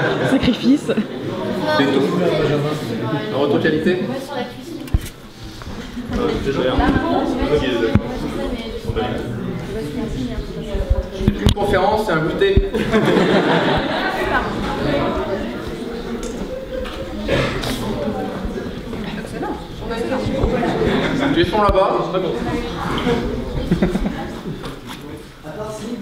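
A young man speaks calmly into a microphone, heard through a loudspeaker in a room.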